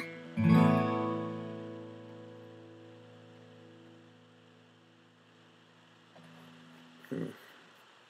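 A guitar chord is strummed once and rings out slowly.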